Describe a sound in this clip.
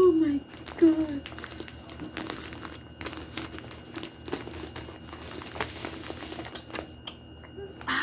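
Plastic packaging crinkles and rustles as it is handled.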